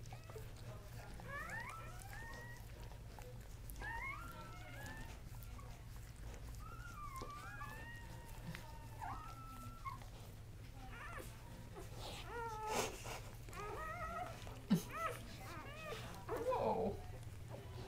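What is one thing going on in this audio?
Newborn puppies squeak and whimper up close.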